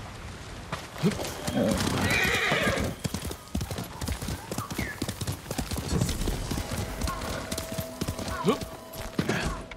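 Horse hooves thud steadily across soft ground.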